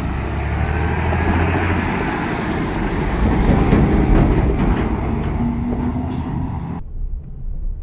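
Tractor tyres crunch on gravel.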